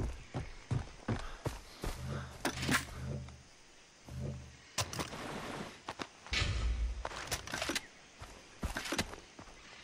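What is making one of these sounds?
Footsteps rustle through grass.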